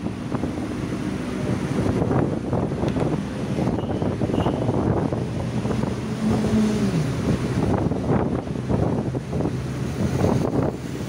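A vehicle's engine hums steadily while driving along a busy road.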